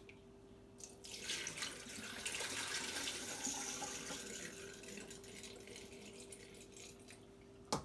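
Water pours out of a bowl and splashes into a sink.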